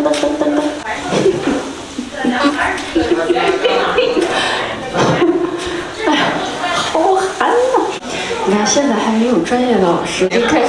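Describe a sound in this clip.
A young man talks and laughs with animation close by.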